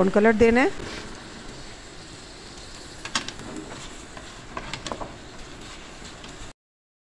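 Onions sizzle gently in a pan.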